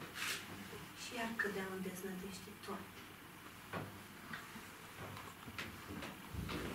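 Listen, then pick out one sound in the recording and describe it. A young woman speaks calmly, a little distant.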